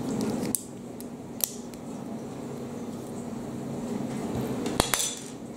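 Small plastic bricks click and snap together between fingers.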